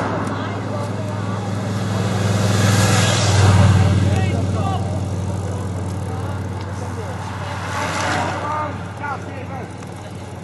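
Spectators chatter and cheer nearby.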